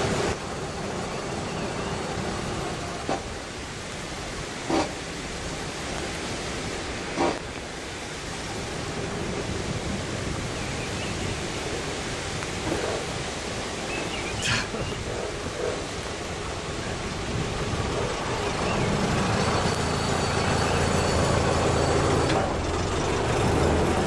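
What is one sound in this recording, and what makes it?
An old engine chugs steadily nearby.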